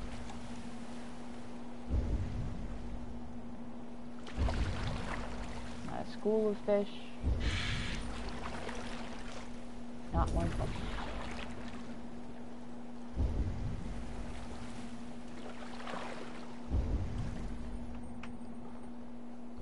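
Waves wash gently around a boat.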